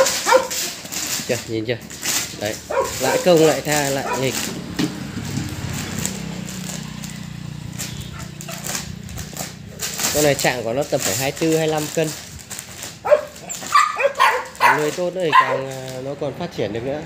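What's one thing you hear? A puppy tugs at a plastic bag, making it rustle and crinkle.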